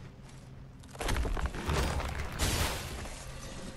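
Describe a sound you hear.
A sword swings through the air and strikes with heavy impacts.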